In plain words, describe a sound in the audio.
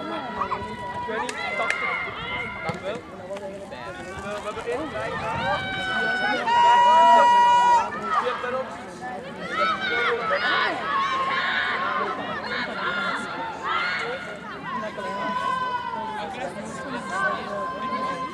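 Young women shout and call out to each other outdoors on an open field.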